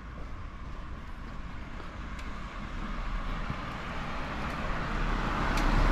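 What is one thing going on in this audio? A car drives closer along a quiet street.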